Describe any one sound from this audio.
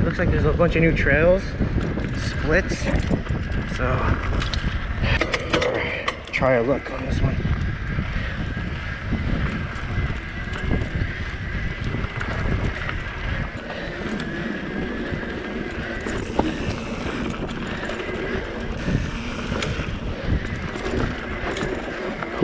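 Bicycle tyres crunch and rumble over a dirt trail.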